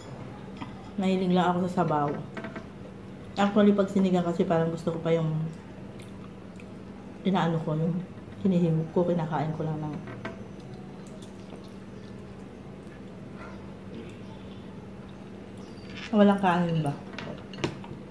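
A middle-aged woman talks calmly close by.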